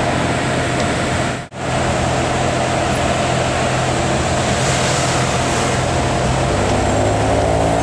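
A sports car engine idles with a deep, steady rumble nearby.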